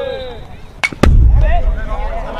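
A baseball smacks into a catcher's mitt.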